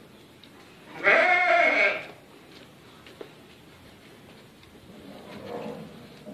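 A goat bleats loudly close by.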